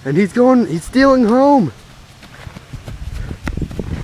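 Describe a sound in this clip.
Footsteps run across dry dirt.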